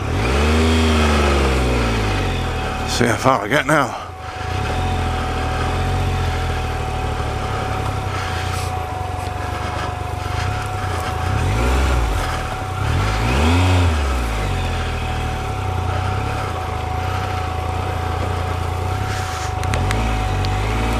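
A motorcycle engine rumbles and revs up and down.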